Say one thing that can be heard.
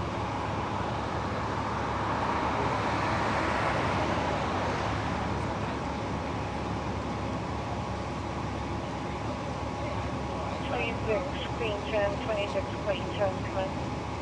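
Men talk quietly with each other.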